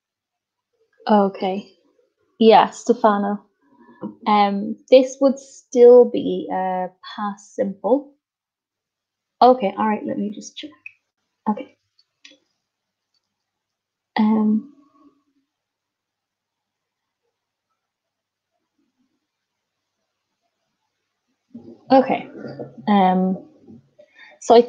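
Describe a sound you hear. A woman speaks calmly and clearly into a microphone over an online call.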